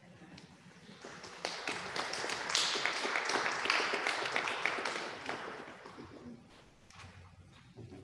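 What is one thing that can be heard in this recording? Footsteps pass close by in a large echoing hall.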